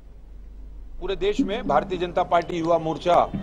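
A middle-aged man speaks calmly and closely into microphones.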